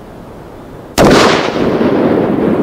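A loud explosion booms and its roar rolls on outdoors.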